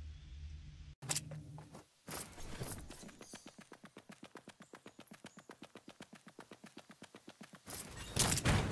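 Quick footsteps run across the ground.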